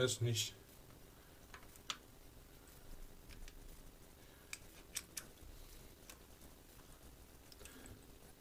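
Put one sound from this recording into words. A bicycle freewheel ticks as a hand turns the sprockets.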